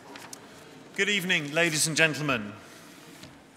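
A middle-aged man speaks through a microphone in a large echoing room.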